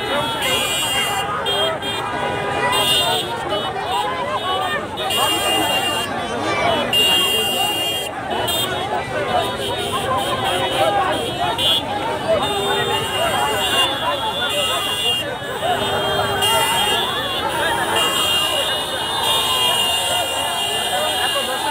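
A large crowd of men shouts and cheers excitedly close by, outdoors.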